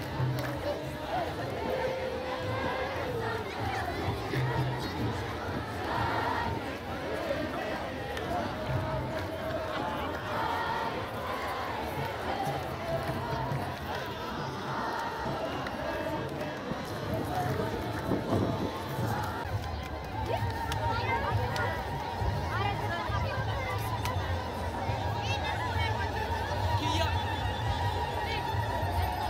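A large outdoor crowd chants and sings together.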